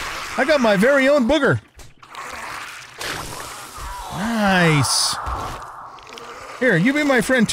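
An elderly man speaks loudly and with animation into a microphone.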